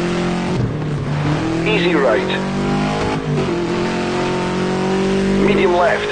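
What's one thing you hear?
A Subaru rally car's flat-four engine revs hard under load.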